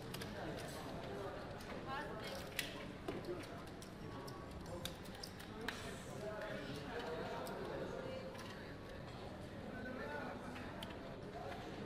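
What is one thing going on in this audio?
Gaming chips click and clatter as they are stacked and moved.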